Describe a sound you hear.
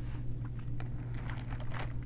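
A woman sips a drink through a straw.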